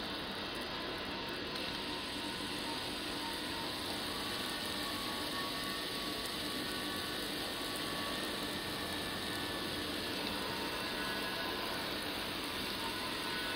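Water boils and bubbles steadily.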